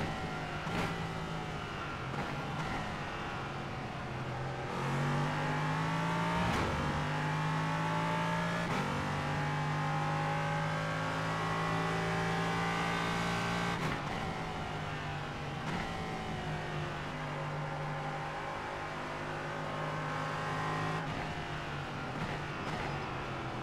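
A racing car engine roars, rising and falling as gears shift.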